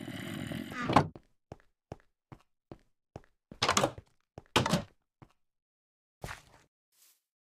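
Blocks thud as they are placed and dug.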